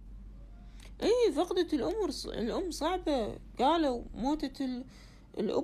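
A woman speaks close to a phone microphone with animation.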